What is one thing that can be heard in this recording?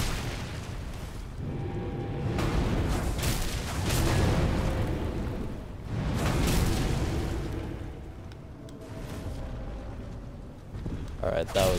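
Huge footsteps stomp heavily on the ground.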